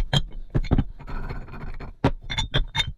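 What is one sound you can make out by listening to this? A metal bar scrapes and rattles on a hard surface.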